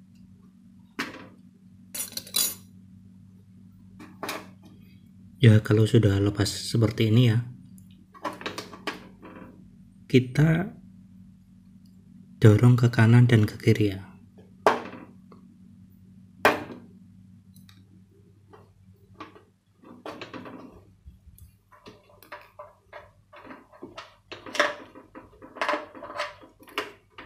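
Plastic knobs click and clack as hands fit them onto a plastic casing.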